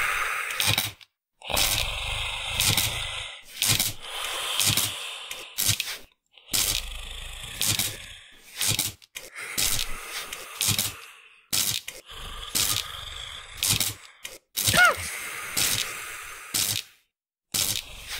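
Sharp blows land again and again in a fight.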